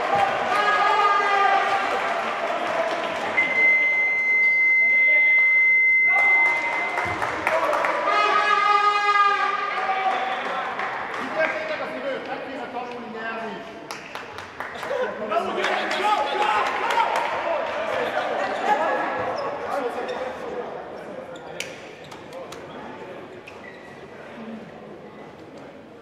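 A crowd cheers and chants loudly in an echoing hall.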